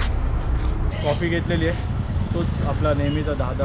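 A young man speaks calmly up close.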